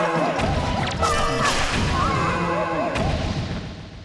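A sword strikes a spiked enemy with a sharp clang.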